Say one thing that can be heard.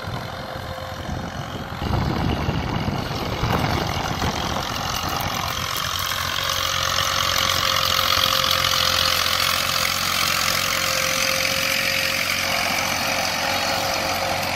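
A tractor engine rumbles steadily close by.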